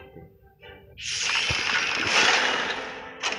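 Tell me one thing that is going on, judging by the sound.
Game battle sound effects clash and whoosh.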